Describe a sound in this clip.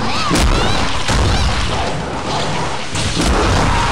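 Explosions burst loudly.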